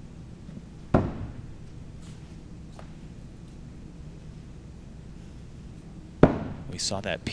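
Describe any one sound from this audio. An axe thuds hard into a wooden target.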